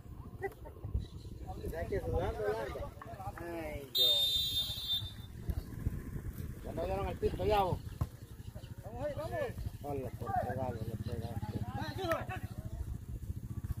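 Young men shout to each other outdoors, some distance away.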